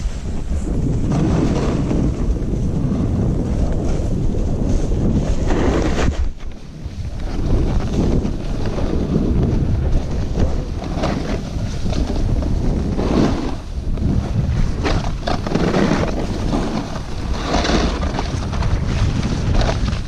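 A snowboard scrapes and carves over rough snow, in surging bursts.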